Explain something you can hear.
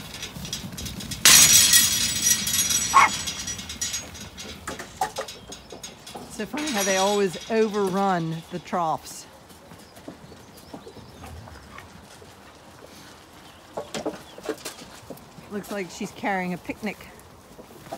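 Hooves shuffle and patter on the ground.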